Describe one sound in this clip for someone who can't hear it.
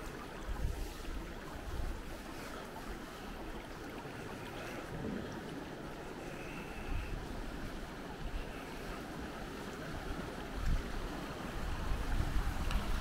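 Wind gusts outdoors and buffets the microphone.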